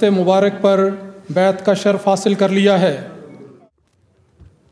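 A man sings a slow, drawn-out chant.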